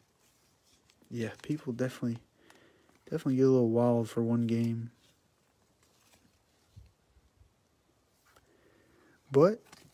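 A plastic card sleeve crinkles softly as it is handled.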